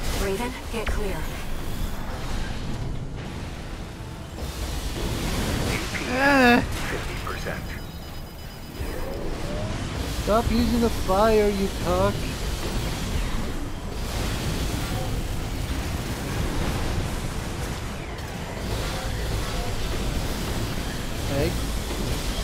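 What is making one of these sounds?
Explosions rumble and roar.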